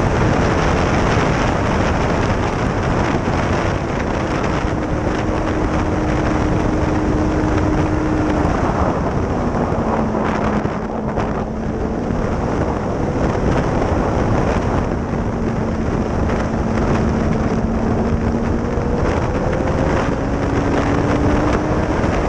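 Wind rushes loudly past at speed.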